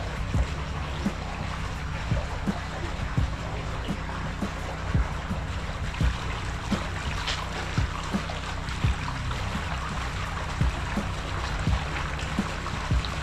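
Pool water gently laps.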